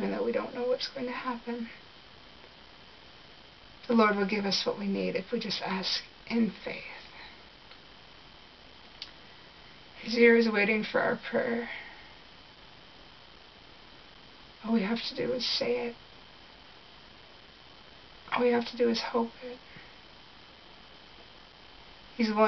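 A young woman speaks calmly and close to the microphone, in short bursts with pauses.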